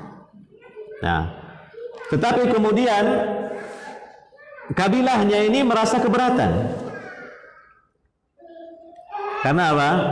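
A man chants melodically into a close headset microphone.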